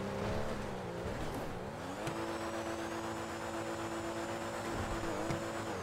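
Tyres hiss and skid on snow.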